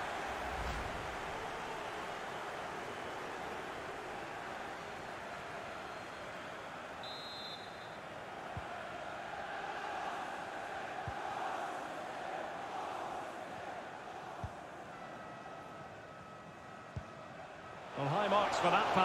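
A large crowd murmurs steadily in a big open stadium.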